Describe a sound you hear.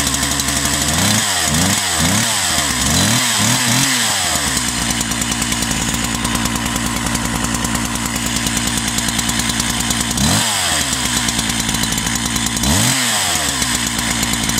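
A two-stroke chainsaw is revved in short bursts.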